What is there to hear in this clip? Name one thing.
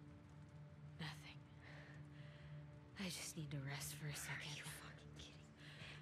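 Another young woman answers quietly and close by.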